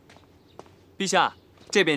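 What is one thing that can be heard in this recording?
A young man speaks politely and calmly, close by.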